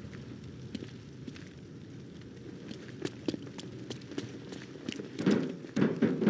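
Heavy footsteps thud on hard ground.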